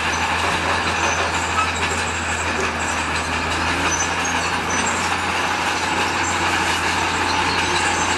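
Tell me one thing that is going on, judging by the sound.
A bulldozer engine rumbles steadily close by.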